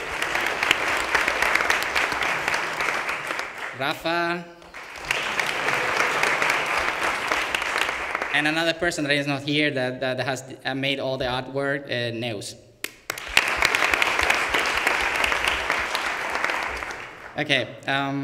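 Hands clap in applause.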